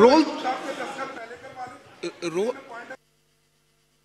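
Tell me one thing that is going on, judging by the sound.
A crowd of men talks and calls out loudly in a large echoing hall.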